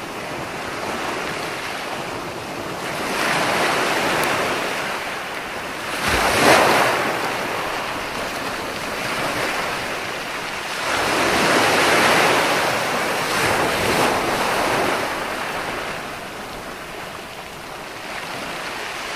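Waves crash and wash up onto the shore in surges.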